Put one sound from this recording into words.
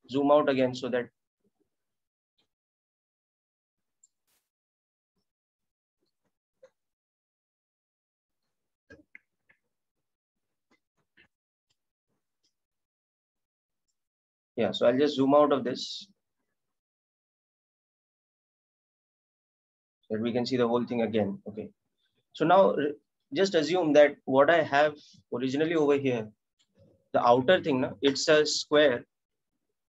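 A man speaks calmly into a microphone, with pauses, as on an online call.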